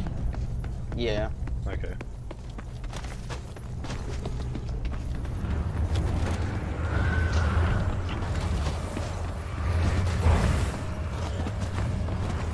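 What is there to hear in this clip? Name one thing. A deep engine rumbles steadily and swells louder.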